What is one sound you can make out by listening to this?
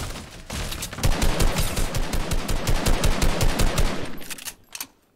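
A gun fires in a rapid burst of shots.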